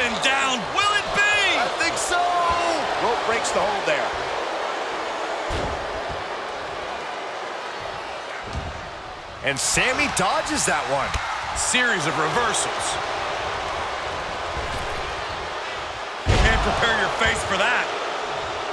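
A large crowd cheers and roars throughout in a big echoing arena.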